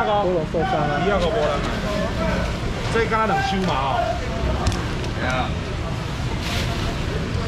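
Plastic baskets clatter as they are stacked.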